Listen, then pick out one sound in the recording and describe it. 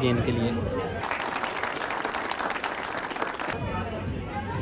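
A small group of people clap their hands.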